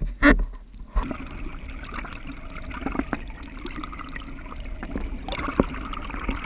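Water splashes and bubbles loudly near the surface.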